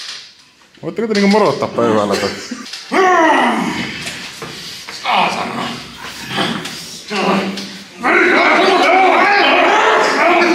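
A young man grunts and strains with effort.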